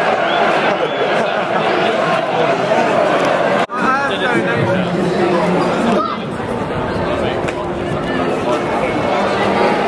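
A large football crowd chants and sings outdoors.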